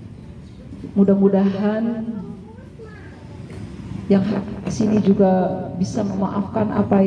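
A young woman chants melodically into a microphone, heard through a loudspeaker outdoors.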